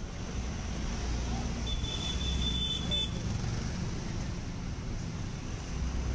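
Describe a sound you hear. Motorcycles buzz past.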